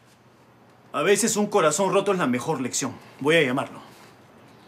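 A middle-aged man speaks calmly nearby.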